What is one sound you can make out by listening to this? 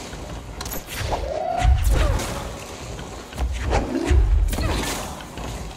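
Heavy objects crash and shatter with loud booming impacts.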